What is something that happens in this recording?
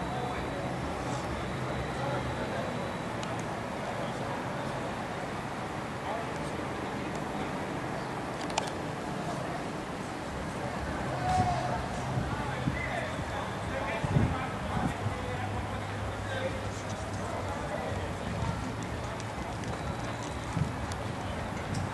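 Young men talk and call out to each other across an open pitch.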